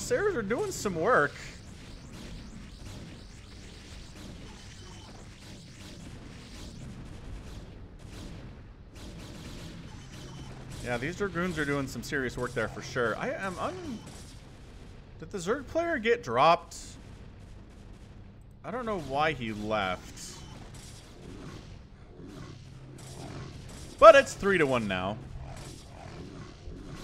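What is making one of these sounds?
Small arms fire and laser blasts crackle in a busy battle.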